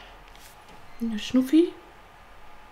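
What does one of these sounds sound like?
A young woman speaks briefly and animatedly into a close microphone.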